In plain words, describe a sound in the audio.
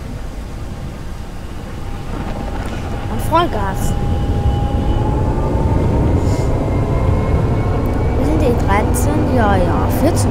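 An electric tram rolls along rails, its motor whining.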